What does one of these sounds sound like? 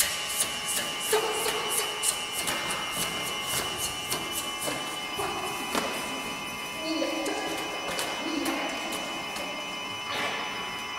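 A woman sings in a large echoing hall.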